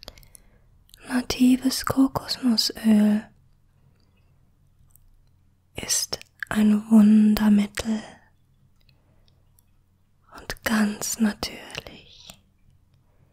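A young woman whispers softly, very close to a microphone.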